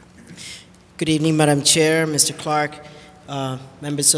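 A man speaks clearly and calmly into a close microphone.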